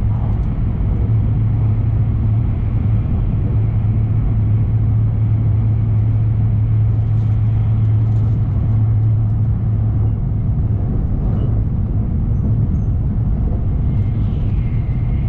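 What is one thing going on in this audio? A train rumbles steadily along the tracks at speed, heard from inside a carriage.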